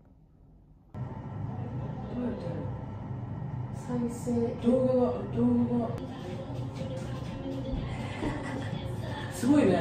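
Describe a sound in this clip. Young women chatter in a room with a slight echo.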